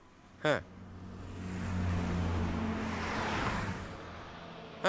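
A bus engine rumbles as the bus drives past.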